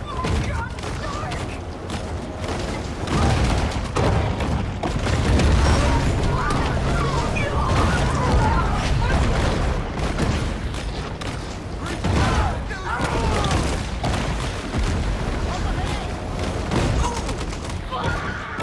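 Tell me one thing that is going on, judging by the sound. Bodies crunch and splatter in sudden bursts.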